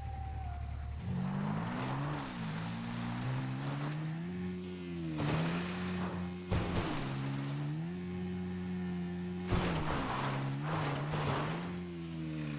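A motorbike engine revs and roars, rising and falling in pitch.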